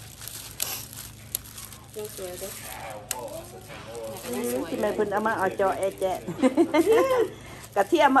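Plastic bags crinkle and rustle as hands handle them.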